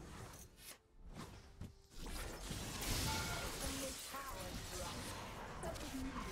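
Game spell effects crackle and whoosh in a battle.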